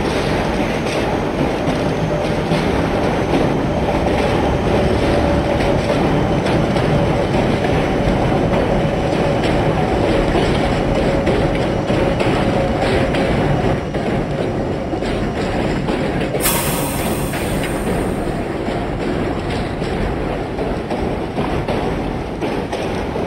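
A subway train rumbles and clatters steadily along the tracks.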